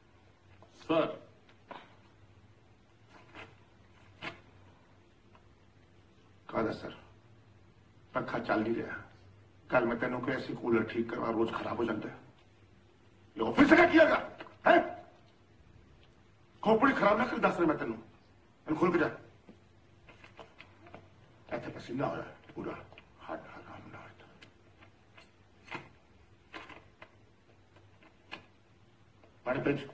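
A man speaks with irritation, close by.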